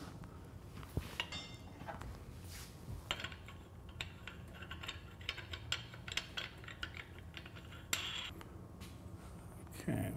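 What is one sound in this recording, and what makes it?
Metal parts click and scrape as hands adjust a bar.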